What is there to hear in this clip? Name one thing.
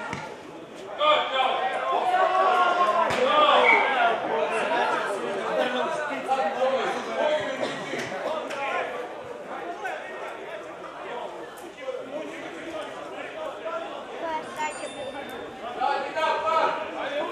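Spectators talk loudly close by.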